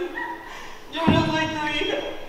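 A body thuds onto a wooden stage floor.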